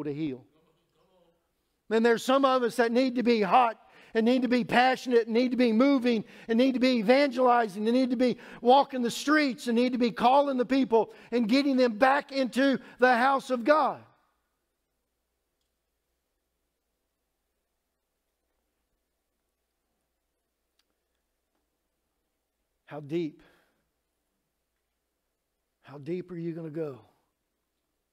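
A middle-aged man speaks with animation through a microphone in a large echoing room.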